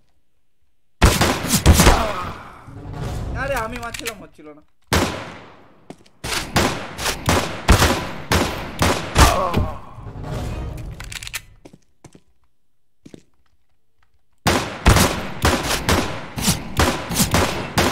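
Pistol shots fire in rapid bursts.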